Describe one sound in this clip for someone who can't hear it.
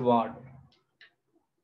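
A man speaks briefly and close by.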